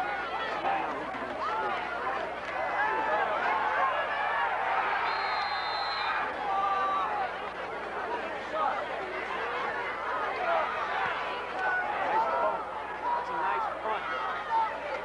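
A crowd of people talk and cheer nearby outdoors.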